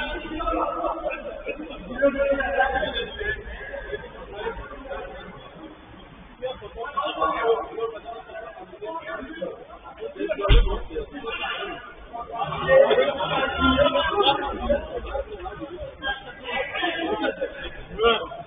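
Men shout and call out to each other from across a large echoing indoor pitch.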